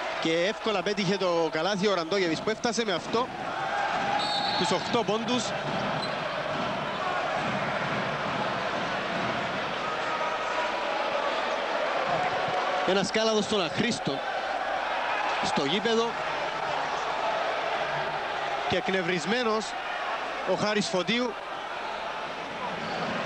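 A large crowd cheers and chants in an echoing arena.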